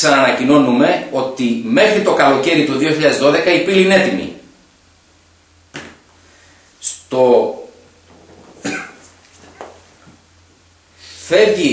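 A man speaks calmly into a nearby microphone, with pauses.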